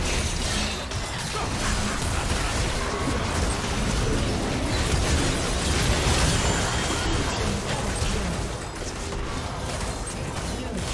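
Game weapons strike with sharp hits.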